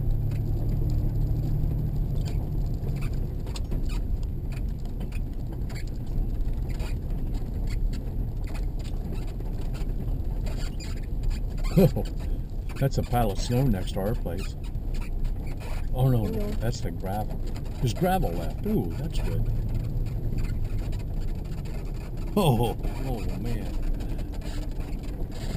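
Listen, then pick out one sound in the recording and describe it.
Tyres crunch and rumble slowly over gravel.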